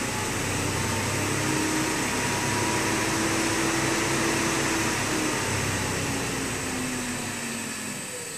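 An electric motor whirs steadily with a loud hiss, then begins to slow down.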